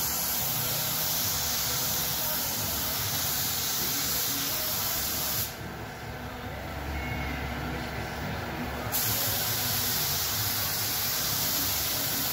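A paint spray gun hisses loudly and steadily, stopping for a few seconds before starting again.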